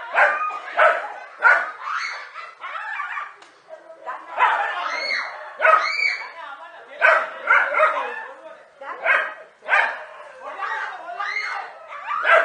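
A dog barks sharply at close range.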